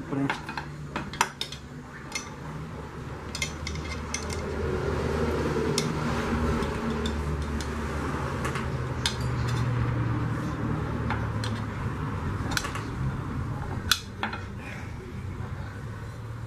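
A metal bar knocks against the rim of a metal pan.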